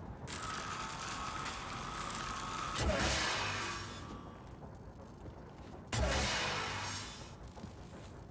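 A weapon fires loud crackling electric blasts.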